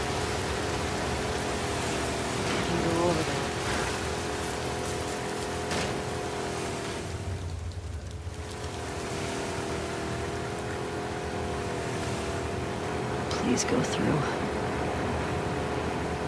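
Water sloshes as a small boat is pushed through it.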